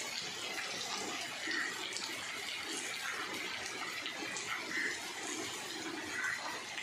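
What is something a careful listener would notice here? Shallow floodwater trickles and flows over the ground outdoors.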